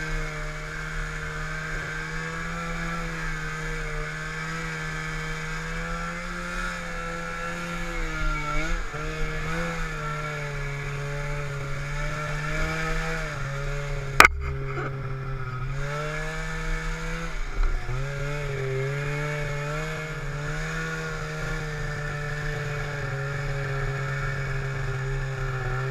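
A snowmobile engine drones steadily up close, its pitch rising and falling with the throttle.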